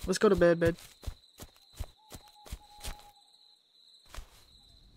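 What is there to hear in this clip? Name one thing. Footsteps crunch through dry grass at a steady walking pace.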